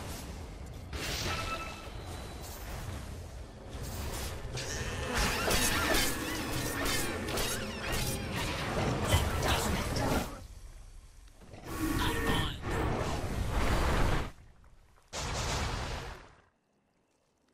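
Magic blasts and clashing fight sounds crackle loudly in a fast battle.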